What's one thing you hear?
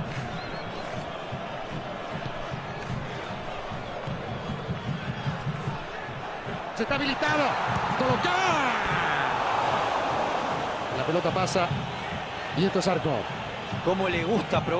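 A large stadium crowd murmurs, then swells into a loud roar.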